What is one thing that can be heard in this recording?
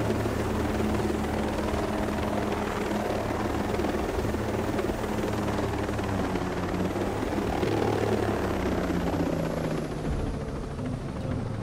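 A helicopter's engine whines steadily.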